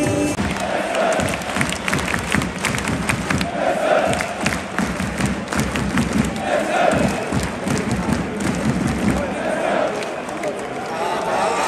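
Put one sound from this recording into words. A large crowd chants and sings rhythmically outdoors.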